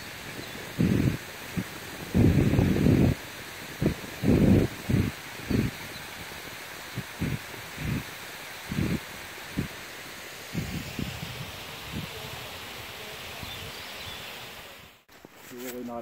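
Water ripples and trickles gently over stones.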